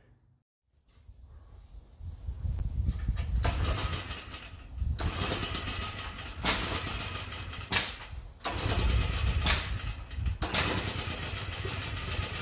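A lawn mower engine roars steadily nearby.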